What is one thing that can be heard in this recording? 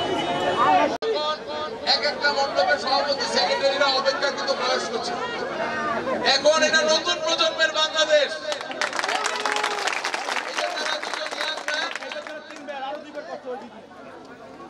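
A crowd of men talk all around at once.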